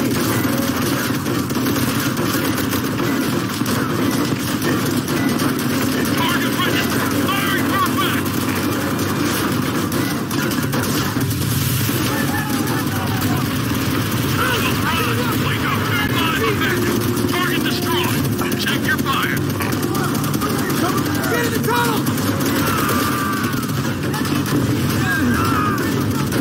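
Rifles fire in rapid bursts nearby.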